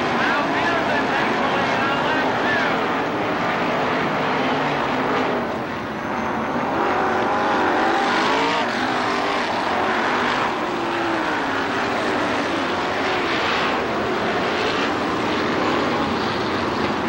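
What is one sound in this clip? Several race car engines roar loudly, rising and falling in pitch.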